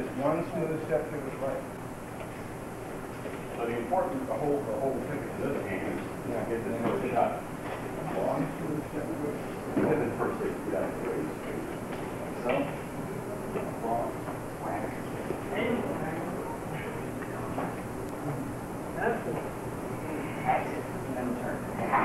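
A man talks calmly in an echoing room.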